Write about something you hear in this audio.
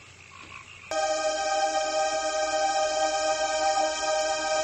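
An electronic tone hums steadily.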